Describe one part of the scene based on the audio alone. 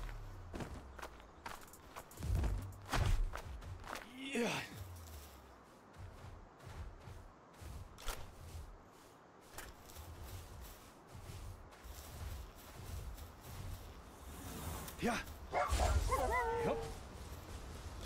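Heavy footsteps thud on the ground.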